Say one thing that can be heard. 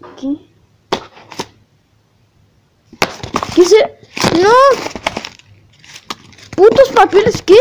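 Cardboard rustles and knocks as hands open a box.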